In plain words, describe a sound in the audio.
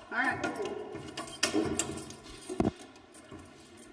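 A metal hatch unlatches and drops open with a clank.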